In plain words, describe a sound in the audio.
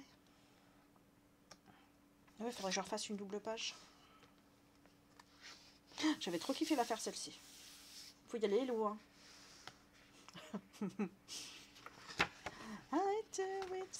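Paper pages rustle as a book is turned.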